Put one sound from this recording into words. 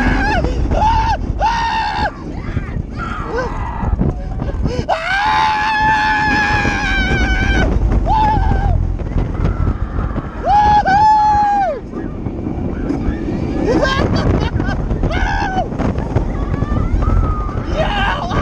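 A roller coaster car rattles and rumbles along its track.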